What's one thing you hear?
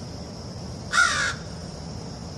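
A crow caws once, close by.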